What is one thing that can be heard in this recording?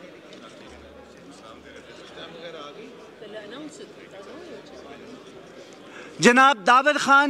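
Many people murmur and talk in a large echoing hall.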